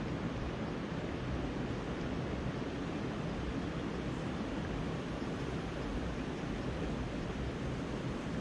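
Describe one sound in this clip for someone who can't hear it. A river flows and splashes over stones nearby.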